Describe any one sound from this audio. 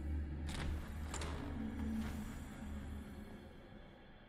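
A wooden door creaks as it swings open.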